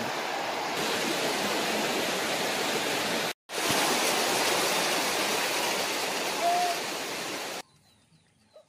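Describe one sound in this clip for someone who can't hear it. Floodwater flows and rushes steadily.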